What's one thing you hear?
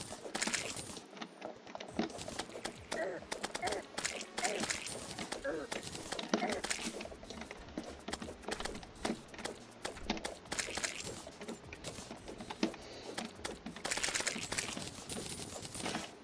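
Short squelching hits and impact effects from a video game sound rapidly over and over.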